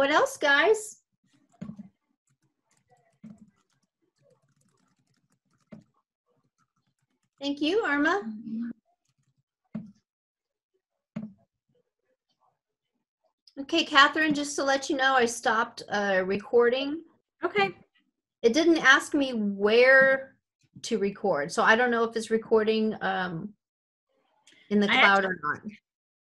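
A middle-aged woman speaks calmly through an online call microphone, with pauses.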